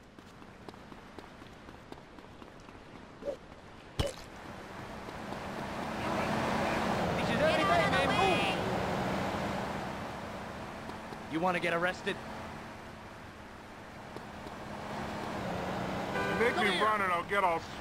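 Footsteps slap quickly on pavement.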